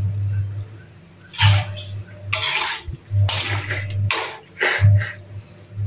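A metal fork clinks and scrapes against a pan.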